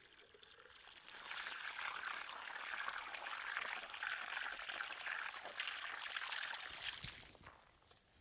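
Water sprays steadily from a garden hose.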